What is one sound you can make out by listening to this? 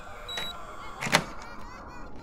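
A lock clicks open sharply.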